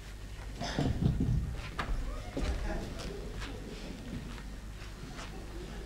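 Footsteps shuffle on a wooden stage.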